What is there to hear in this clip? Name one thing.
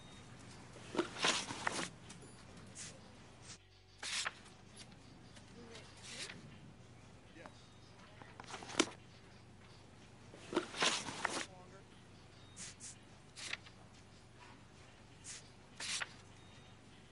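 Paper pages of a notebook rustle and flip.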